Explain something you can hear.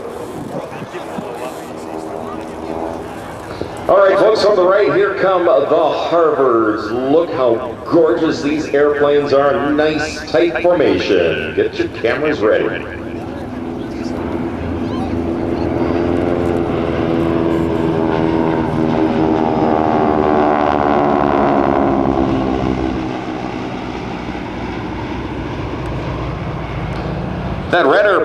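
Several propeller plane engines drone overhead, swelling and fading as the planes pass.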